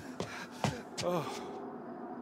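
A man speaks tensely nearby.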